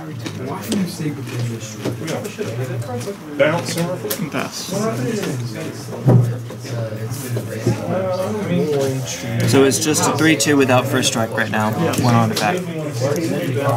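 Cards shuffle and flick in a hand.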